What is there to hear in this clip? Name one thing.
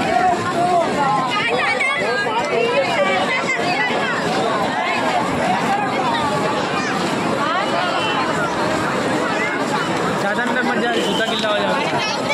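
A large crowd of young men and women talks and shouts loudly nearby, outdoors.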